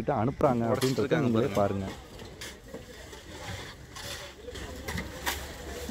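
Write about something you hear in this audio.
A shovel scrapes through crushed ice.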